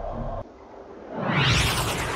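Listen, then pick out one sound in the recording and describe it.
A spaceship whooshes past with a rising roar.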